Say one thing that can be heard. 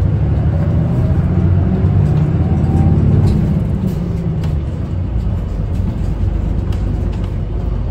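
A bus engine rumbles, heard from inside.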